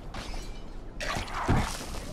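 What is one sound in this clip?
Hands clang against a metal ladder.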